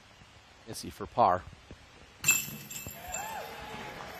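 A disc clatters into the metal chains of a basket.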